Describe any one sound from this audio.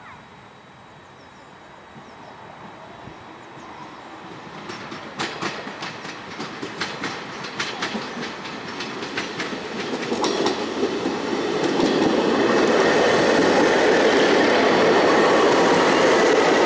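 A passenger train approaches and rumbles past close by, growing louder.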